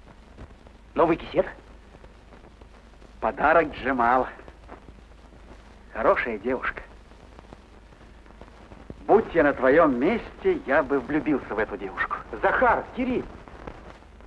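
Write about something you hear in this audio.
A man talks cheerfully, close by.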